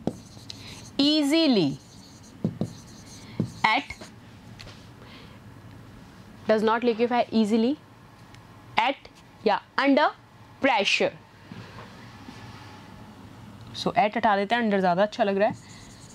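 A young woman speaks with animation into a close microphone, in short bursts.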